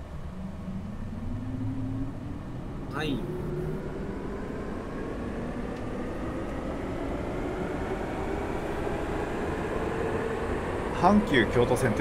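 An electric train motor whines, rising steadily in pitch as the train speeds up.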